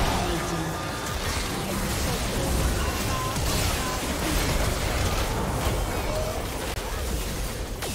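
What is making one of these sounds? Magic spells whoosh and crackle as fighters clash.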